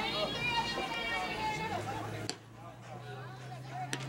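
A softball smacks into a leather catcher's mitt.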